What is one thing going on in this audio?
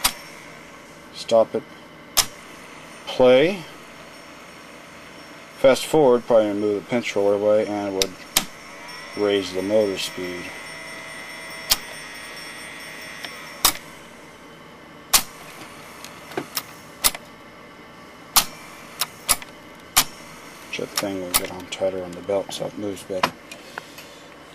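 A small machine's mechanism clicks and knocks sharply now and then.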